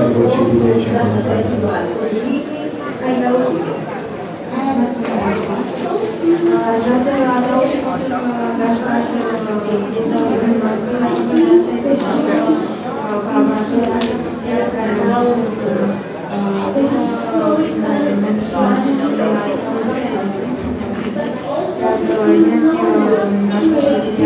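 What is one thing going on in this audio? A woman speaks with animation into a microphone close by.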